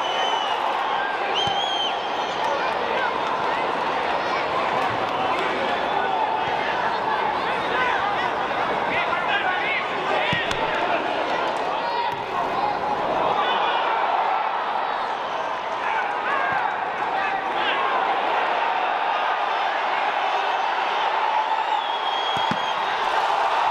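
A large stadium crowd cheers and chants throughout.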